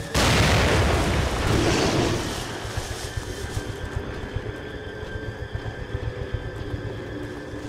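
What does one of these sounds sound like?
Footsteps run quickly over a rough path.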